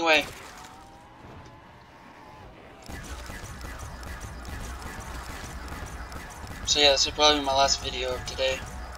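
A futuristic gun fires energy blasts again and again.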